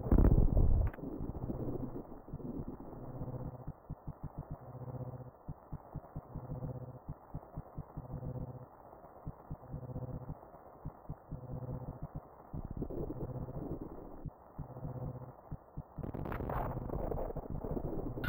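Quick footsteps patter as a game character runs.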